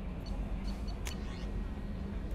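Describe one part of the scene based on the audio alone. A short electronic chime sounds as a menu option is selected.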